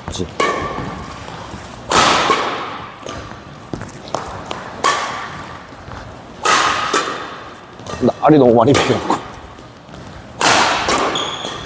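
Rackets strike a shuttlecock with sharp pops that echo in a large hall.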